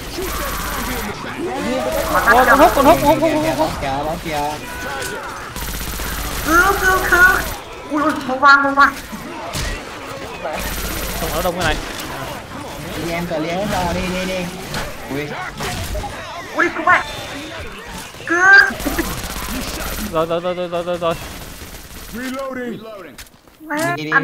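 Zombies growl and snarl close by.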